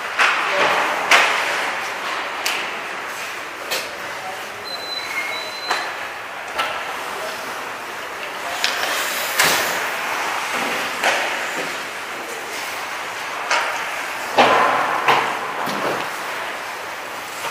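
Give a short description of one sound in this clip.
The sounds echo around a large, hard-walled rink.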